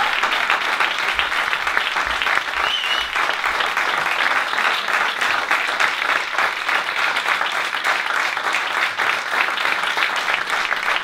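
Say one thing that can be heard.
An audience applauds steadily in a hall.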